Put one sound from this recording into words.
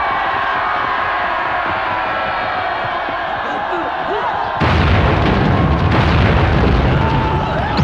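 A crowd of men shouts as they charge.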